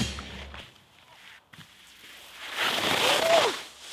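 Footsteps crunch on snow close by.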